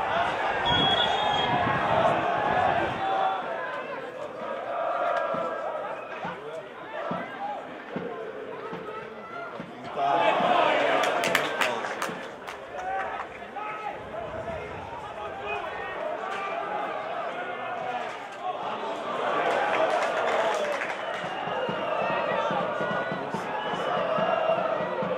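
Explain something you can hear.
A stadium crowd chants and sings outdoors.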